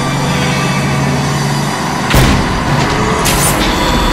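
A heavy truck engine roars and strains.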